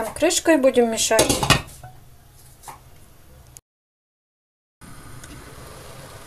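A metal lid clinks onto a cooking pot.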